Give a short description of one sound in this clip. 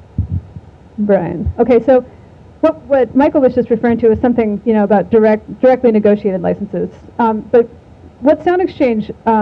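A woman speaks calmly through a microphone.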